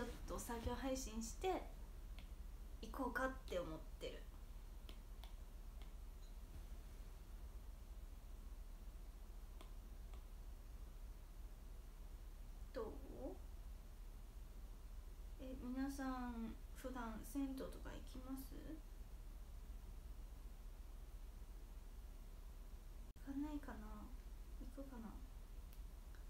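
A young woman speaks softly and close to the microphone, in short bursts with pauses.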